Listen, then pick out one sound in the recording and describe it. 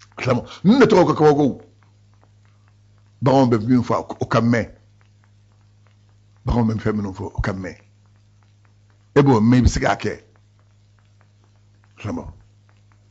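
A man speaks up close in bursts, with animation, and pauses between phrases.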